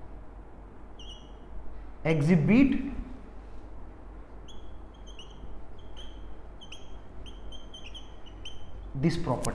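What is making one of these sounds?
A marker squeaks as it writes on a whiteboard.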